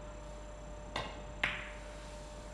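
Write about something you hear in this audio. A cue strikes a ball with a sharp tap.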